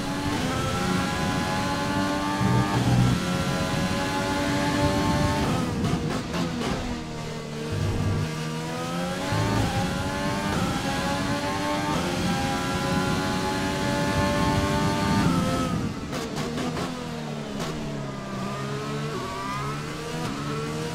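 A racing car engine screams at high revs, dropping in pitch as it brakes and rising again as it speeds up.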